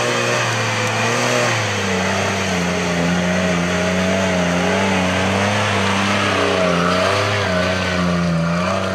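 An off-road vehicle's engine rumbles and revs as it climbs a rough track.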